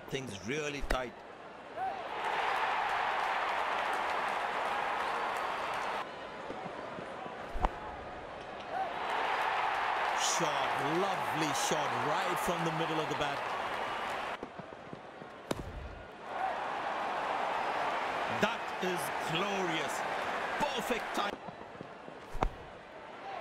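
A bat hits a cricket ball with a sharp crack.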